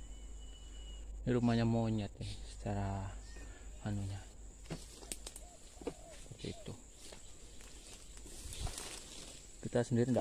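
Leaves and branches rustle as someone pushes through dense undergrowth.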